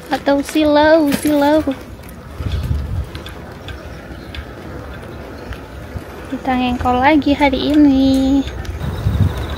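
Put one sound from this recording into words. A young woman speaks close to the microphone in a drawn-out, sing-song voice.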